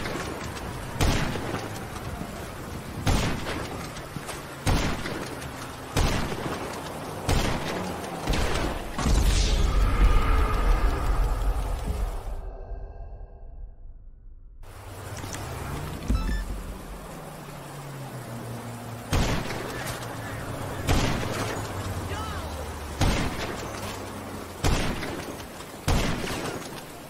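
A rifle fires loud single shots, one every second or two, with a booming echo.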